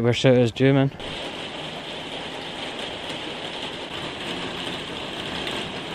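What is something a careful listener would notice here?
Rain patters steadily on pavement.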